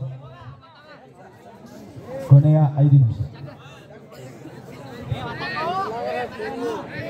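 A large crowd shouts and cheers in a big open arena.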